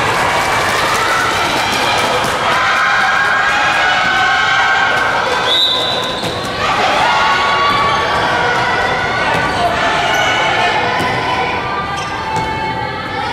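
A ball bounces on the court with hollow thuds.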